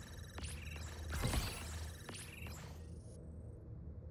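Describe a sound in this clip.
Video game menu sounds chime and whoosh as a score tallies up.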